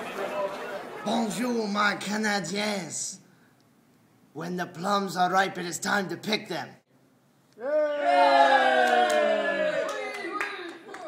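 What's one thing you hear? A young man sings loudly and with feeling.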